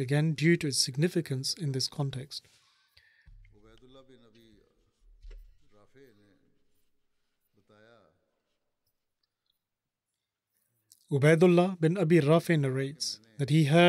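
An elderly man speaks calmly through a microphone.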